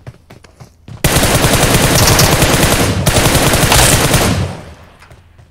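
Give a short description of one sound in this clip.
Rapid gunfire rattles loudly in a video game.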